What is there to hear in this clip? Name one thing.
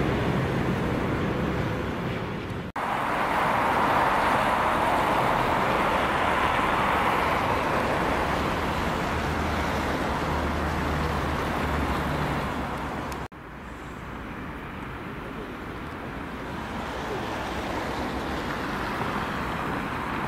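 Strong wind blows steadily outdoors in a snowstorm.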